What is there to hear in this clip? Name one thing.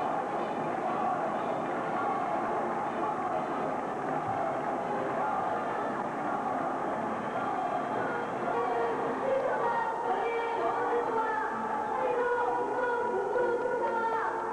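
A large crowd murmurs and chatters in an echoing stadium.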